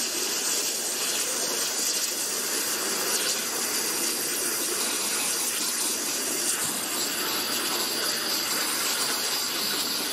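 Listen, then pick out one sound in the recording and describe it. A water jet hisses loudly and steadily as it cuts through metal.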